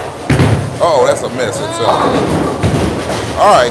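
A bowling ball rolls down a lane and crashes into pins.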